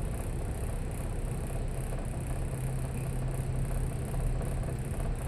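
Traffic hums faintly and steadily in the distance.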